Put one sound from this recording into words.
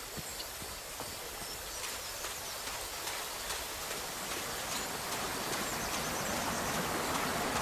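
Water laps gently at a shore, growing louder.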